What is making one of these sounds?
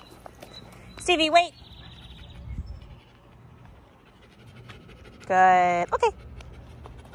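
A small dog yelps and whines close by in short, high-pitched bursts.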